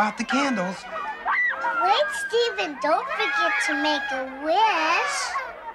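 A young girl speaks animatedly, close by.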